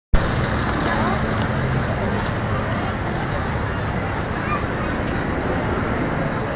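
A busy crowd murmurs outdoors.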